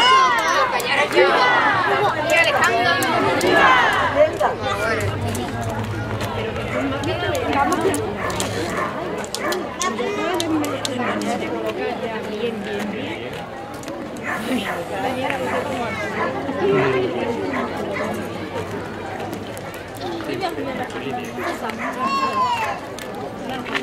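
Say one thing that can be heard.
Children call out with high voices.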